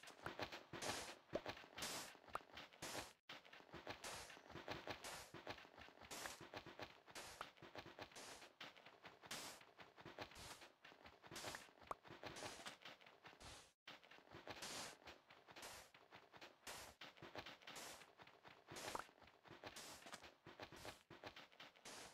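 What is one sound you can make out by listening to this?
Sand crunches in quick, repeated scrapes as blocks are dug away.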